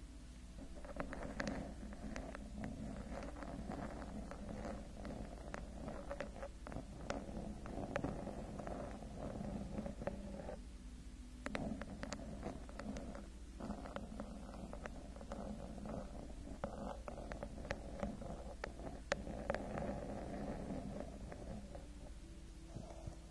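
Long fingernails tap and scratch on a textured microphone cover close up.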